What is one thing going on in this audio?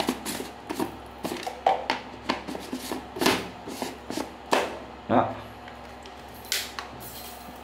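Plastic and metal parts click and knock as a flask is handled.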